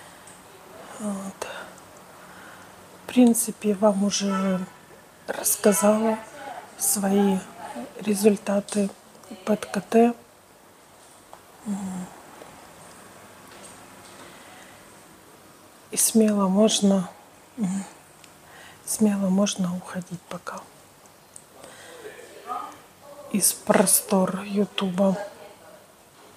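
A woman speaks calmly and close to a clip-on microphone, with pauses.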